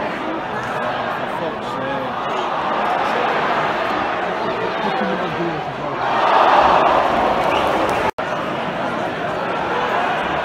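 A large stadium crowd murmurs and chants steadily outdoors.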